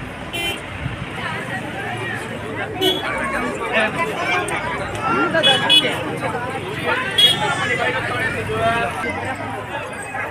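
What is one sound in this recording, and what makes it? A crowd of men and women chatter all around outdoors.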